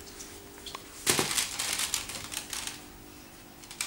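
Plastic blocks creak and click as a child steps up onto them.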